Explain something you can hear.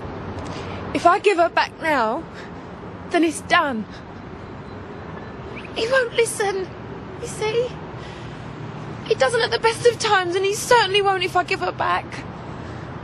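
A young woman speaks tearfully and pleadingly outdoors.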